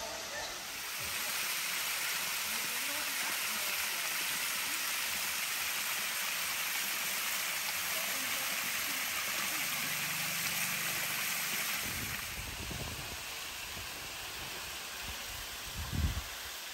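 A waterfall splashes steadily onto rock close by.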